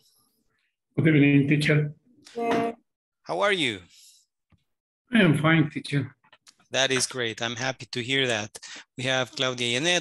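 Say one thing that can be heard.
A young man speaks cheerfully over an online call.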